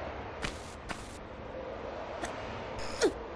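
Footsteps thud softly on stone.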